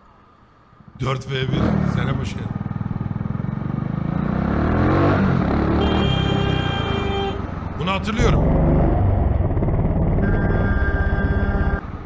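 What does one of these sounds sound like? A motorcycle engine rumbles and roars close by.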